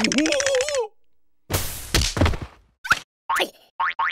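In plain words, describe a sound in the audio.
A soft thud sounds as a cartoon creature drops to the ground.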